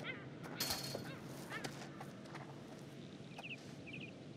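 Clothing scrapes against rock as a man crawls through a gap.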